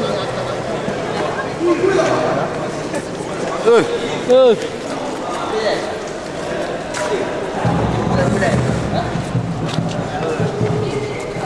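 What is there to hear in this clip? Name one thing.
A crowd of young men chatters nearby.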